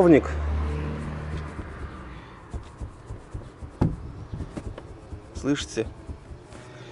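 A seat belt strap rustles as hands handle it.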